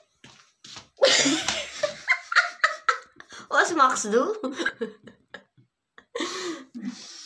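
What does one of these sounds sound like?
An elderly woman talks close by.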